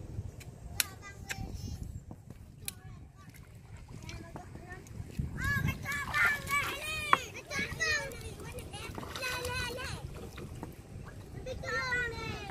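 Water drips and trickles from a fishing net.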